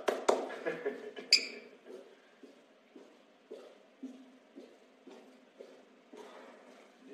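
Footsteps tread softly down stairs.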